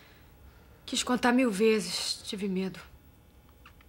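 A man speaks quietly and earnestly close by.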